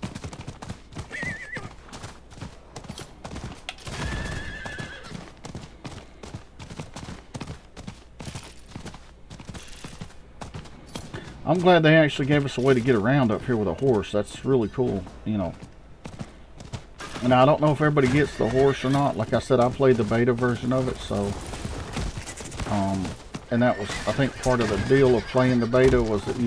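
Hooves gallop at a steady pace.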